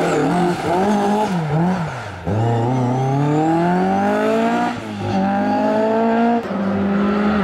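A rally car engine revs hard and shifts gears as the car speeds past.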